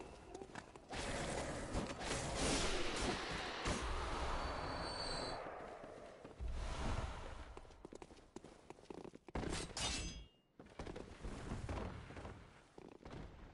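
Blades slash and clang in a fight.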